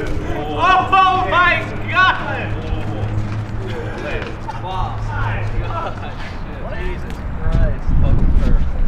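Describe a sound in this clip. Several young men talk and cheer excitedly close by.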